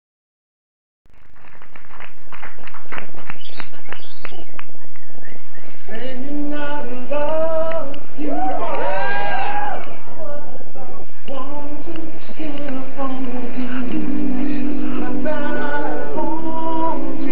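Men sing together in close harmony through microphones, without instruments.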